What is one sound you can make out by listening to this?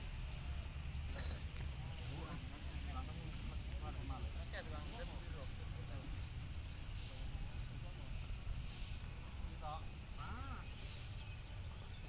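Several men talk quietly at a distance.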